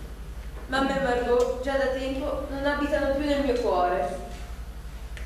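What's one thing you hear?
A young woman sings through a microphone.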